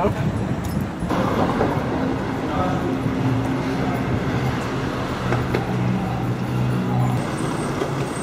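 A vehicle engine idles steadily in an echoing underpass.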